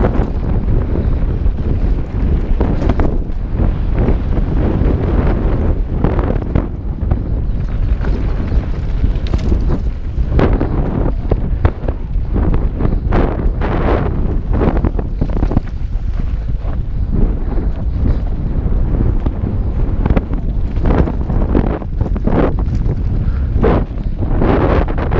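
A bike's suspension and chain rattle and clatter over bumps.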